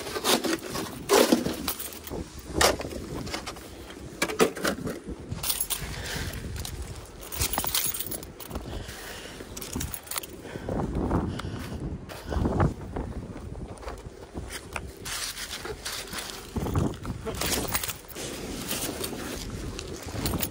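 Chunks of snow thud and crunch as they are dumped.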